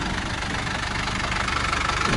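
A bus passes close by with a growing rush of engine noise.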